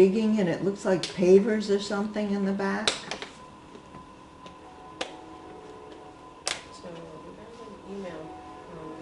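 A woman speaks clearly through a microphone.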